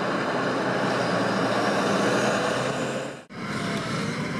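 A tractor engine rumbles loudly close by.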